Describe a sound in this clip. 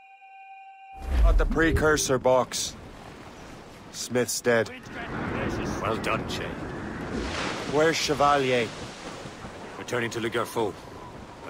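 Waves rush and splash against a wooden ship at sea.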